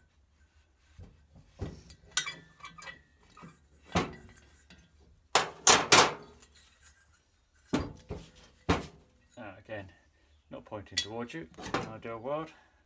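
Metal tools clink and clatter against metal.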